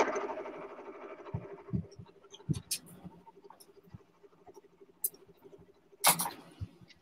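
A sewing machine motor hums and stitches.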